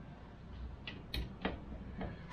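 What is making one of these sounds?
A ratchet wrench clicks as it turns a bolt on metal.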